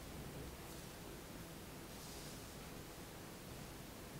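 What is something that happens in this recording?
A card is laid softly on a cloth.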